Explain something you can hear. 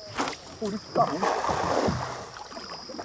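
A fishing net splashes down onto water.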